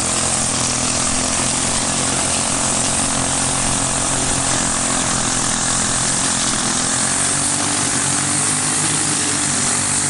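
A small engine drones steadily and loudly.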